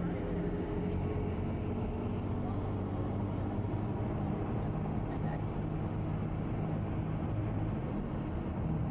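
An electric train rumbles along the tracks, heard from inside a carriage.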